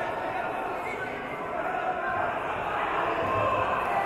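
A wrestler thuds onto a mat.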